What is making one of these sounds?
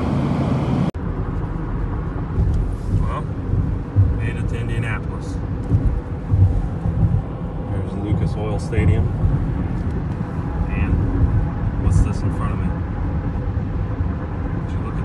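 A car's tyres rumble steadily along a highway.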